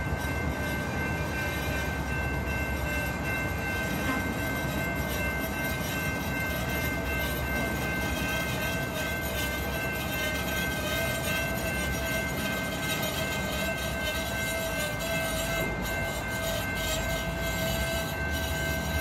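Steel wheels squeal against the rails in a steady high whine.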